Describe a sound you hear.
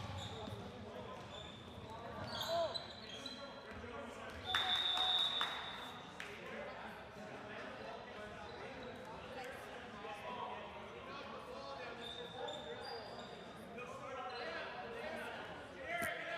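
Young players shout and call out across a large echoing hall.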